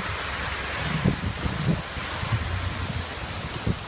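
Water splashes off a roof edge onto the ground.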